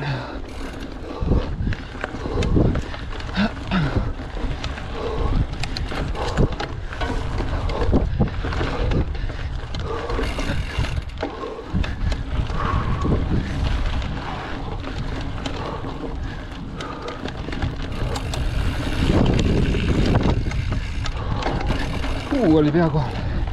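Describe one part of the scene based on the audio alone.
Wind rushes past a close microphone.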